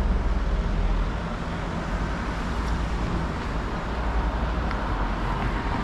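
A car drives by on a cobbled street.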